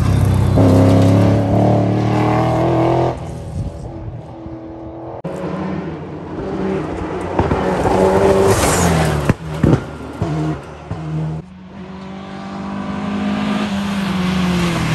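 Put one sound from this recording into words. A rally car engine roars and revs up and down through the gears.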